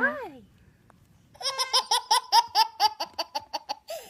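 A baby giggles and laughs nearby.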